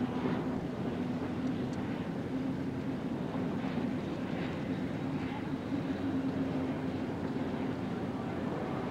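A racing boat's engine roars steadily as it speeds past.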